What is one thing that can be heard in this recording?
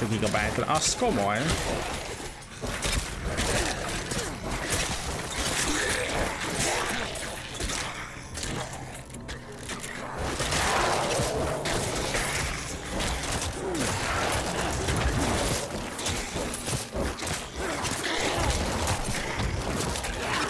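Game combat sounds clash and crackle.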